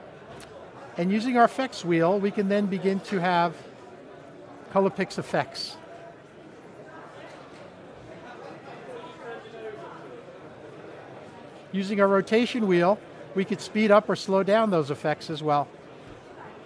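An older man speaks calmly into a microphone, in short bursts.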